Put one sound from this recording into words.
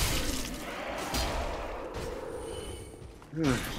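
Swords clash with metallic clangs.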